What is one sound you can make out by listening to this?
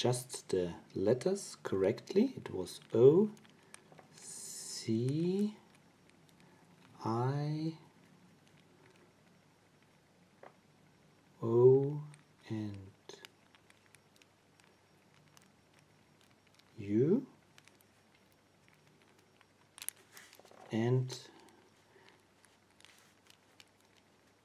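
Small dials of a combination lock click softly as they turn.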